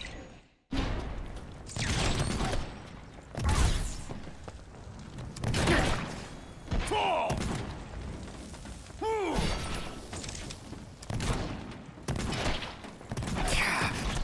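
Metal blades swish and clang in a fight.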